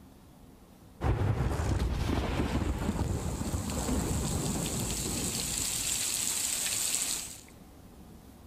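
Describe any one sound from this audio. Heavy rain pours down steadily onto a roof.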